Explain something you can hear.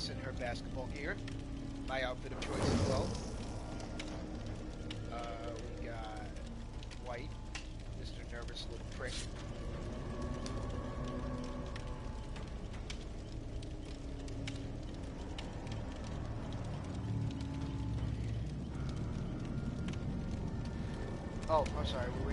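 A campfire crackles and pops steadily.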